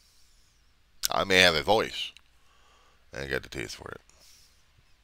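A middle-aged man speaks calmly and close up.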